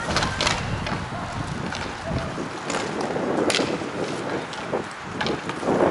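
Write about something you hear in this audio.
A ball knocks against the boards.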